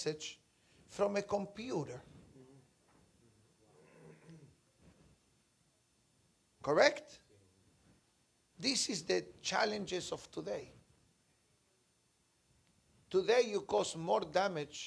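A middle-aged man speaks calmly and expressively into a close microphone, pausing between phrases.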